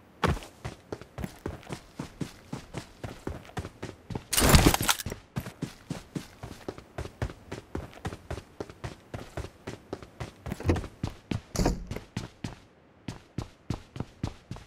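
Footsteps thud quickly and steadily as a runner moves along.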